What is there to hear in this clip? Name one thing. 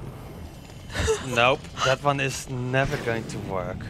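A young person speaks with animation close to a microphone.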